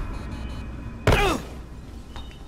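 A heavy thud of a landing on the ground.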